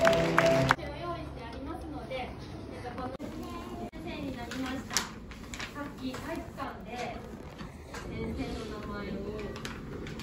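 Children murmur and chatter quietly nearby.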